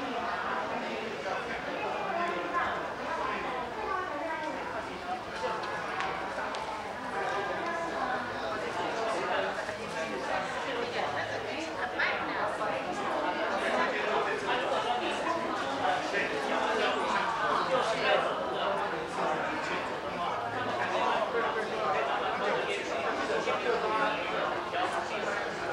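A crowd of people chatters in an indoor hall.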